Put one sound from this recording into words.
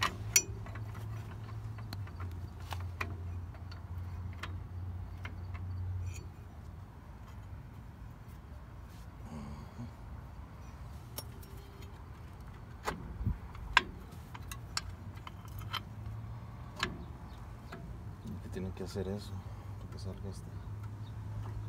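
Metal brake parts click and clink as they are handled close by.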